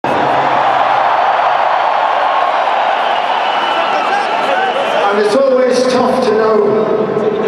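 A large crowd cheers and roars loudly in a big echoing hall.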